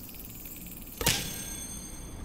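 A lock clicks open.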